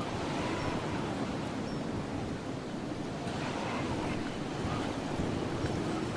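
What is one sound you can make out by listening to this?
Wind rushes steadily past while gliding through the air.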